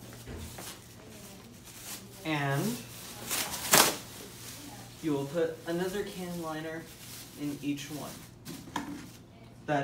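A plastic bin bag rustles and crinkles.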